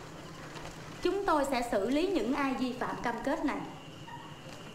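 A young woman reads out aloud, clearly and firmly.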